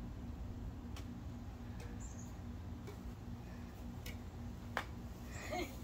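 A badminton racket strikes a shuttlecock outdoors.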